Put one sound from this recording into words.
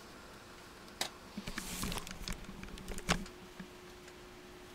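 A headset rustles and knocks as it is handled close to the microphone.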